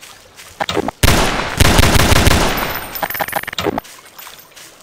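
A pistol fires a quick burst of shots.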